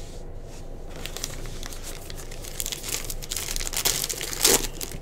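Trading cards rustle and slide against each other as they are handled.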